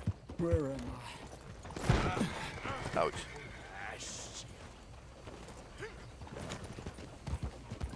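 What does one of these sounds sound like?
Horse hooves clop on a dirt road.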